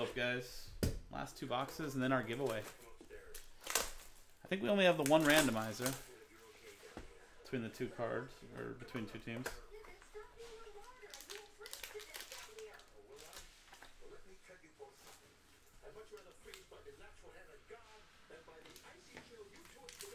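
Cardboard and foil packaging rustles and crinkles in someone's hands.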